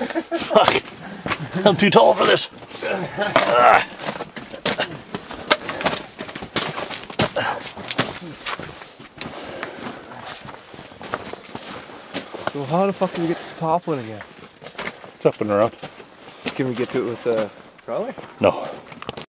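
Boots crunch on snow and rock.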